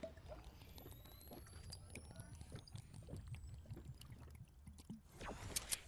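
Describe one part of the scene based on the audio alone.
A character drinks a potion.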